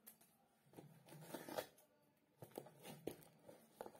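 A cardboard box scrapes across a hard floor.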